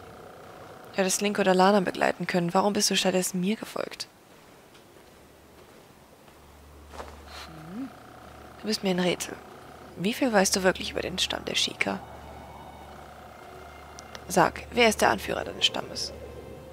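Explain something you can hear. A woman speaks calmly and firmly, close and clear.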